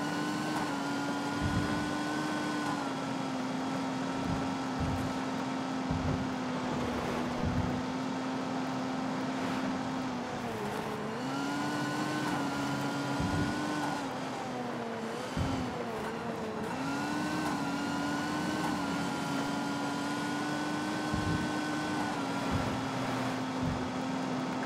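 A sports car engine roars steadily, its pitch shifting with gear changes.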